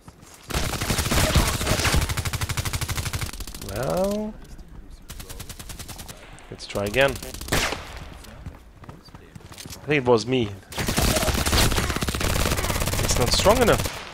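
Rapid automatic gunfire rattles close by.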